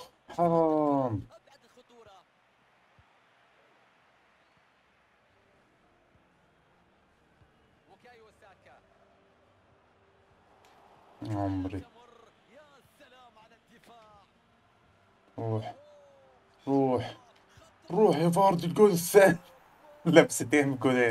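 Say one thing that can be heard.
A young man talks excitedly into a close microphone, in bursts.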